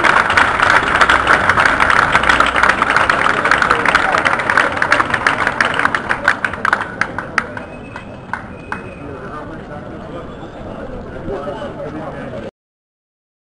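A crowd of men and women murmurs and chatters outdoors.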